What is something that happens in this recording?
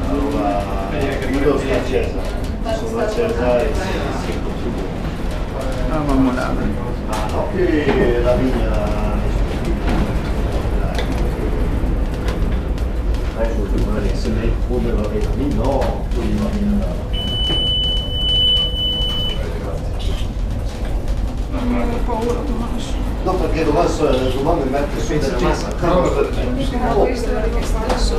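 A cable car hums and rumbles steadily.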